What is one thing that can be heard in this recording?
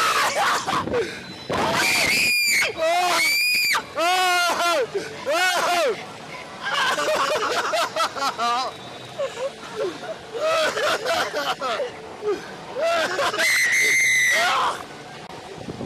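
A man screams and yells loudly close by.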